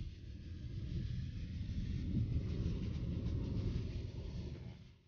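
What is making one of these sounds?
A car's engine and tyres rumble steadily on the road from inside the car.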